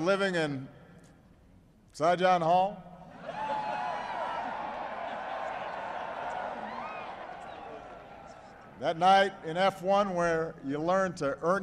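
A man speaks into a microphone, his voice carried over loudspeakers.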